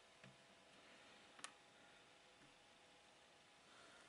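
A jigsaw puzzle piece taps softly into place.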